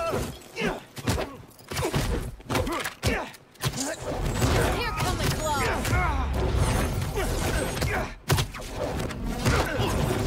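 Punches and blows thud in a fight.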